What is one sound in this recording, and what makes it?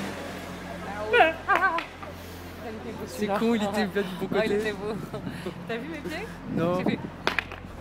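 A woman speaks and laughs close by.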